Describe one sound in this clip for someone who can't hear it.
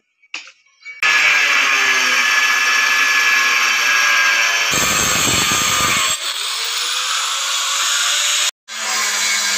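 An electric cutter whines loudly as it cuts through a tile.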